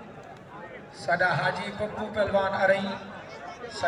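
A crowd of men cheers and shouts loudly.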